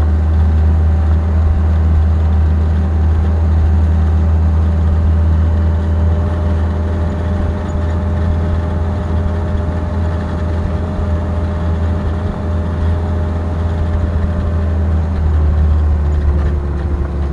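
A heavy diesel engine rumbles steadily up close.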